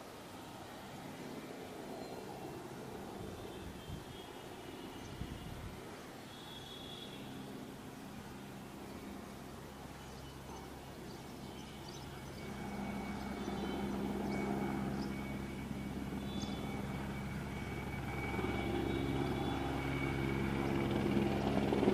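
A helicopter's rotor thuds overhead, growing louder as it approaches.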